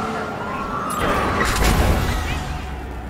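A loud crash bursts out.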